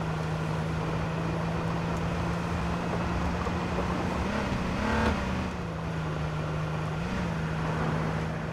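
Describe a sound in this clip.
A car engine hums steadily as it drives over rough ground.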